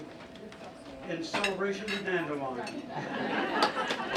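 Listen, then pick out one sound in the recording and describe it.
An elderly man speaks through a microphone to a room.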